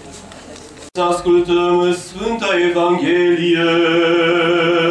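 A man chants loudly in a deep voice, close by.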